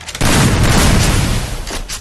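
Gunshots ring out in quick succession.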